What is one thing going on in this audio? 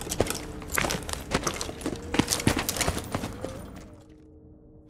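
Heavy footsteps thud, with armour clinking.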